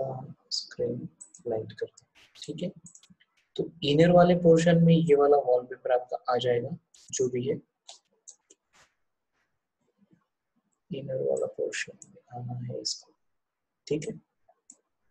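A young man speaks calmly into a close microphone, explaining.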